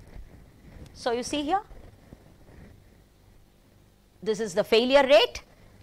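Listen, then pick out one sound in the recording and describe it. A woman speaks calmly into a close microphone, in short phrases.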